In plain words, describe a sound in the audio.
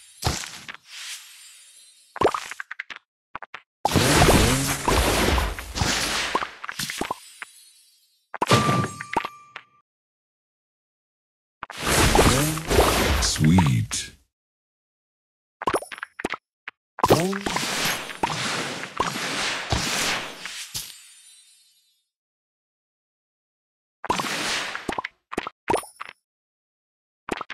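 Sparkly chimes and bursting effects of a mobile puzzle game play in loud bursts.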